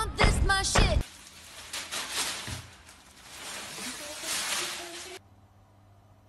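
A cat rustles around inside a plastic bag.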